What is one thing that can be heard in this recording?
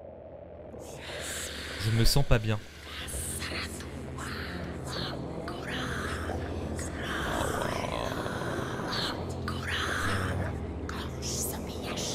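A young man talks into a close microphone.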